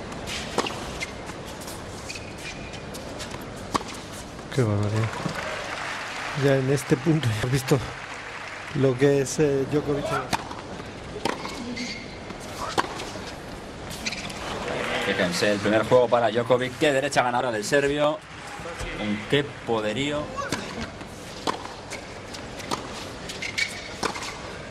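Tennis balls are struck with rackets in sharp pops.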